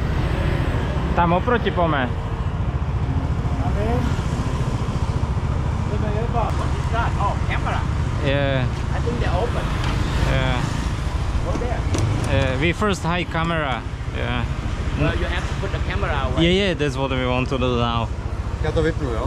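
A man speaks nearby in conversation.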